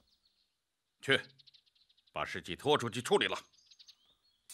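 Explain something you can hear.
A man gives an order in a stern voice.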